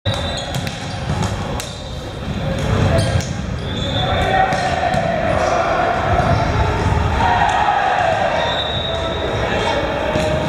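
Young men chatter and call out in a large echoing hall.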